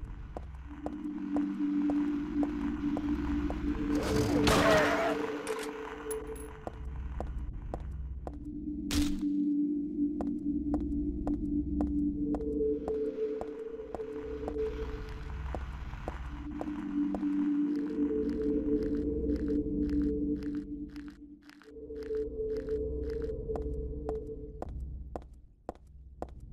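Footsteps run quickly and steadily on pavement.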